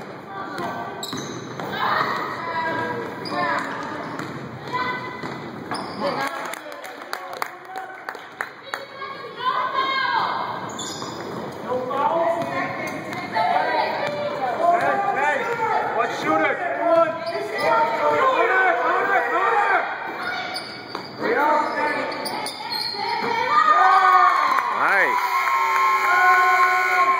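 Young women call out to each other in an echoing gym.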